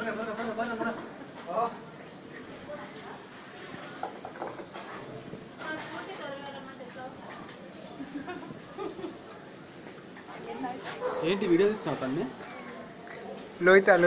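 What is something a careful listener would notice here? Young women talk and laugh close by in a tiled, echoing room.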